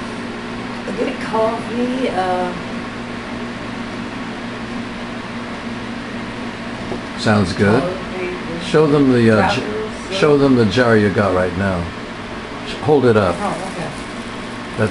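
An elderly woman speaks close by, in a rough, agitated voice.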